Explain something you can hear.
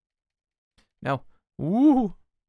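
A young woman speaks briefly with animation into a microphone.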